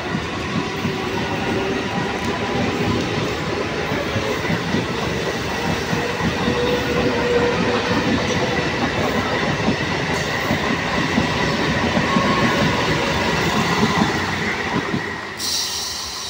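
An electric commuter train rushes past at speed, its wheels clattering over the rails.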